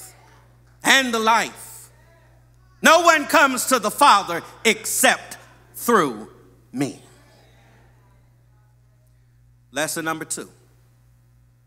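A man preaches with emphasis into a microphone, in bursts with pauses.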